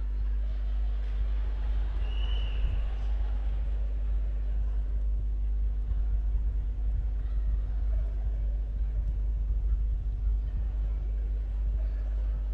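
Suitcase wheels rumble across a stage floor.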